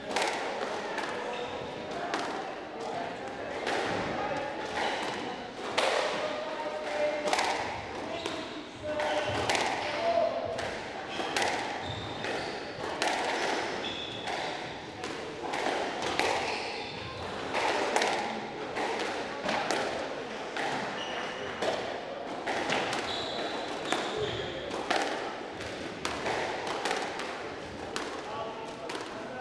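Sneakers squeak on a wooden court floor.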